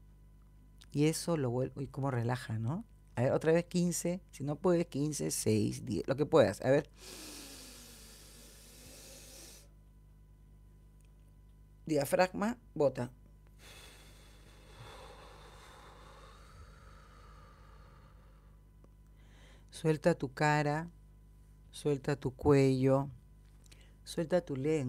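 A woman speaks calmly and warmly, close to a microphone, in short phrases with pauses.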